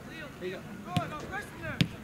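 A soccer ball is kicked with a thud.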